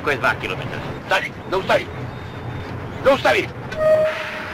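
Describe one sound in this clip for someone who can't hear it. An elderly man shouts urgently.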